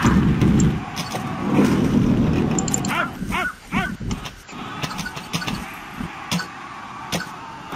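Swords and shields clash in a battle, in sharp, repeated clangs.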